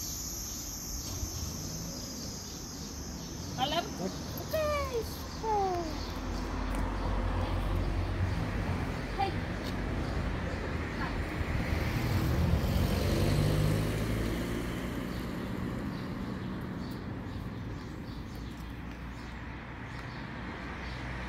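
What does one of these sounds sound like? A woman talks to a dog nearby outdoors.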